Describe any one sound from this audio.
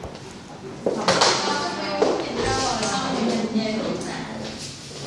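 Young girls talk excitedly nearby.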